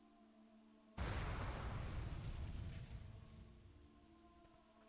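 A fiery blast bursts with a loud roaring whoosh that slowly fades.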